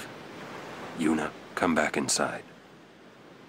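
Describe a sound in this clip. A man calls out firmly.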